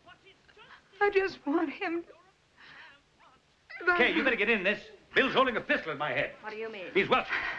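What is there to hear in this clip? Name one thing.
A woman speaks tearfully and with distress, close by.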